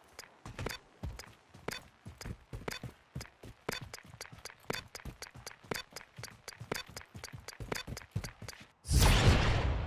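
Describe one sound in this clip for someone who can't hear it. Footsteps run quickly over grass and rock.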